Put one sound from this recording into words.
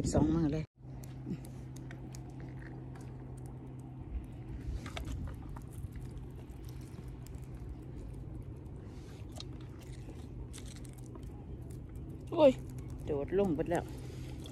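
Snail shells click softly as a hand sorts them.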